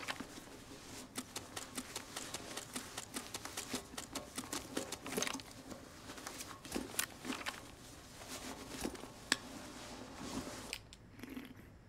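A man talks calmly into a microphone, close up.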